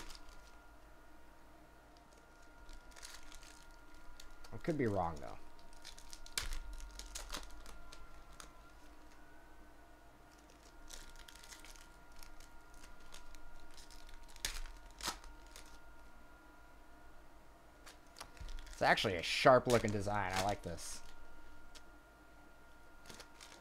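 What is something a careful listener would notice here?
Foil card wrappers crinkle and tear as they are opened by hand.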